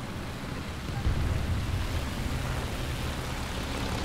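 Metal tracks clank and squeak as a heavy vehicle rolls.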